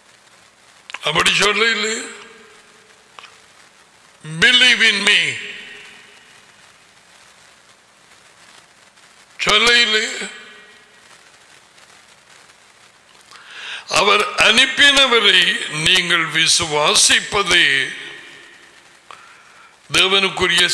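An elderly man reads aloud slowly into a microphone, with long pauses.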